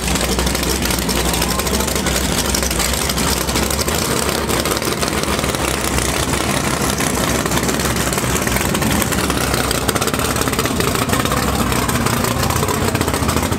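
A powerful race car engine idles with a loud, rough, lumpy rumble close by.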